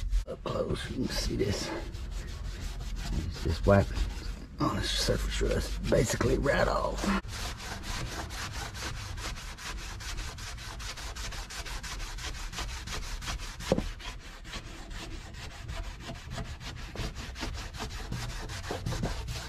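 A cloth rubs and wipes over a metal surface.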